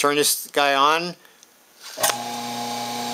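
A rotary switch clicks as it is turned.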